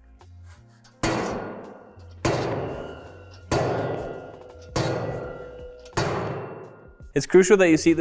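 A metal pole bangs down onto the floor several times, ringing briefly.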